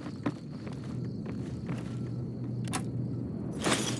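A wooden box lid opens with a clunk.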